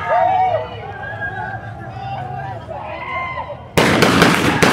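Men shout in the distance outdoors.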